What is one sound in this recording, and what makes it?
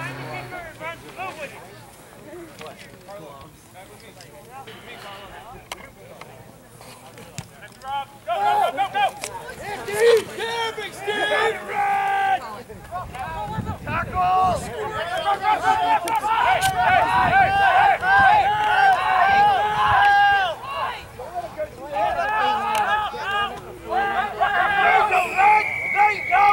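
Spectators nearby shout and cheer loudly outdoors.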